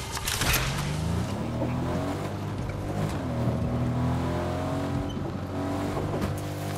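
A car engine starts and revs as the car drives off.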